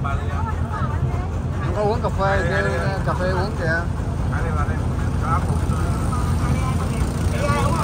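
A boat engine rumbles steadily close by.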